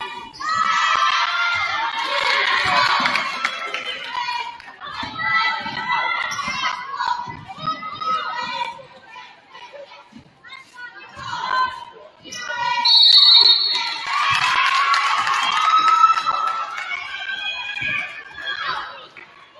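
A crowd of spectators shouts and cheers.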